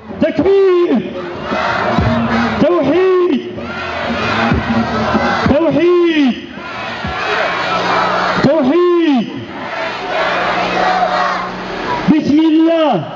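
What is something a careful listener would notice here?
A large crowd chants back in unison outdoors.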